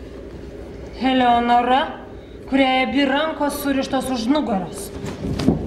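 A young woman sings in a high, clear voice.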